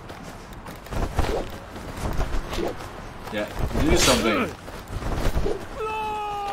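Swords swing and clash in a video game.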